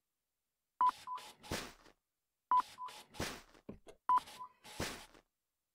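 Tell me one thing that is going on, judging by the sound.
A paper bag rustles as items drop into it.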